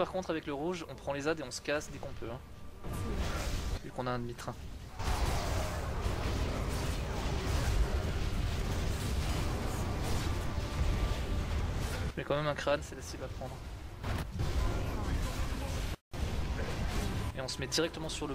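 Spells and weapon blows crash and whoosh in a battle.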